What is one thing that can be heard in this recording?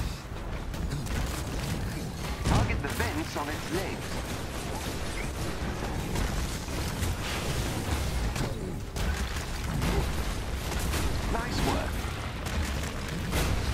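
Heavy punches land with deep thuds.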